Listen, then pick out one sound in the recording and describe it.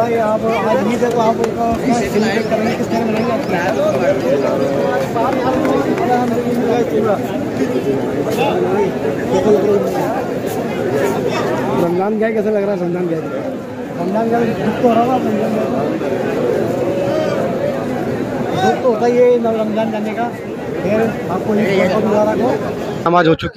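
A man speaks warmly up close.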